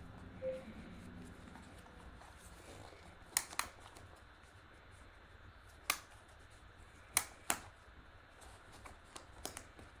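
A fabric strap rustles as it is threaded and pulled.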